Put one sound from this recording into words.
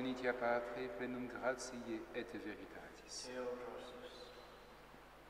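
A man chants in a large echoing hall.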